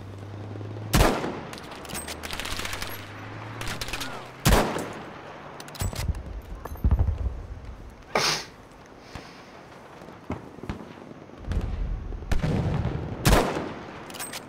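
Rifle shots crack loudly, echoing afterwards.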